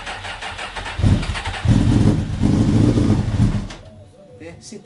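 A motorcycle engine revs loudly several times.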